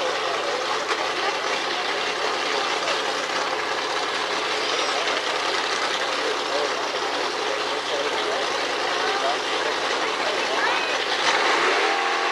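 A race car engine idles with a loud, rough rumble.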